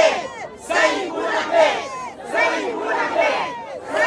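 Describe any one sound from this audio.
A middle-aged woman shouts close by.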